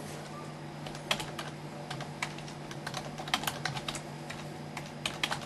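Keys click as someone types on a keyboard.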